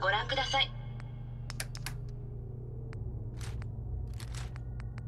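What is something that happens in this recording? Short electronic clicks sound one after another.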